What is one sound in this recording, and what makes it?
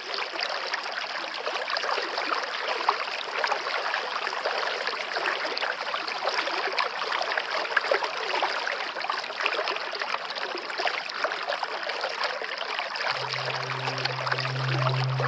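A shallow stream babbles and splashes over rocks.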